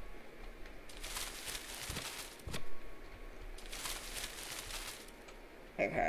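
Leaves rustle as a bush is picked.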